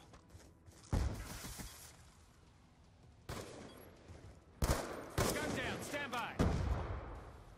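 A rifle fires a few sharp shots.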